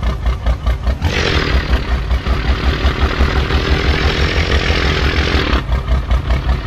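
Air brakes hiss loudly on a truck.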